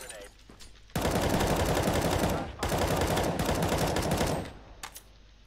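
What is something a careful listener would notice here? A rifle fires in long rapid bursts.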